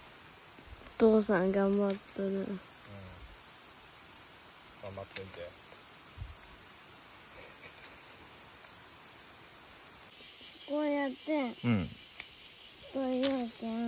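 A woman speaks nearby in short, calm phrases.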